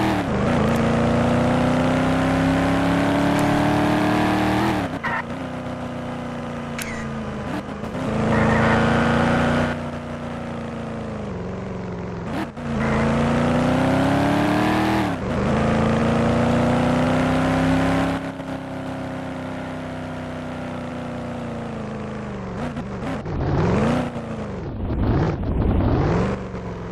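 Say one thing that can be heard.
A car engine roars, revving up and down as it changes gear.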